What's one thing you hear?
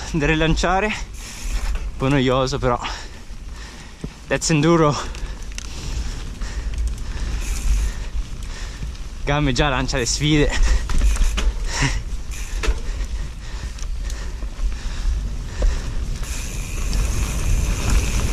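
Bike tyres rattle and crunch over a rough dirt trail.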